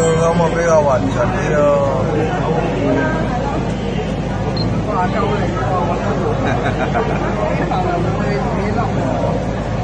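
A gas burner roars steadily.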